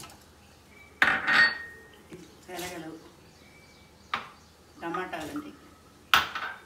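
Small containers clink and clatter against each other.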